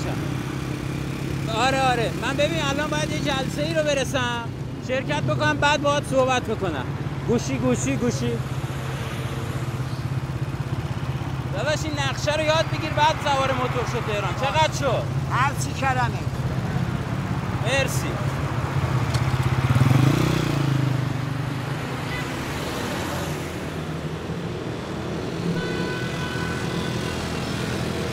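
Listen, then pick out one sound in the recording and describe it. A motorcycle engine idles and putters steadily.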